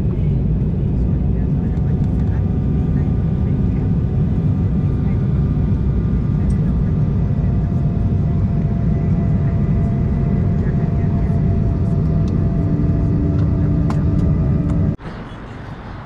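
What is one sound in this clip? A jet engine roars steadily inside an airplane cabin.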